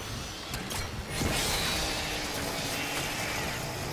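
A monster growls and lunges in a burst of harsh noise.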